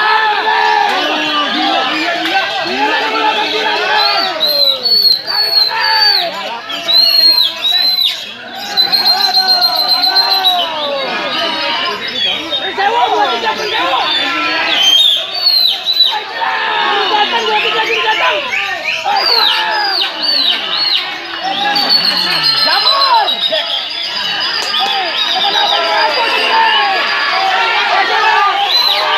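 Caged songbirds sing whistling phrases.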